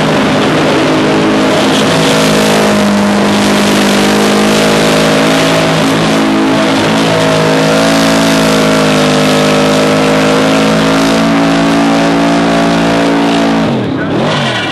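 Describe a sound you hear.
Tyres screech and squeal as they spin on the track.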